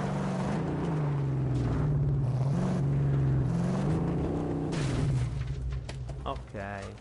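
A car engine roars while driving.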